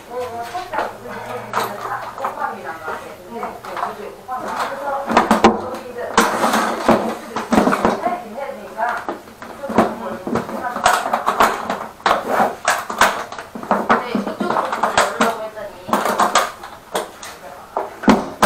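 A metal tool case clatters and clicks as it is handled.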